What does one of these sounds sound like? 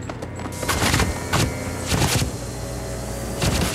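Loose papers flutter and scatter across the floor.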